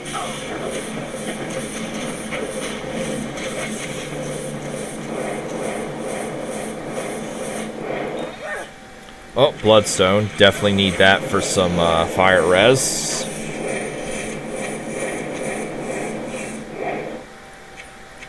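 Fire spells roar and crackle in a fight.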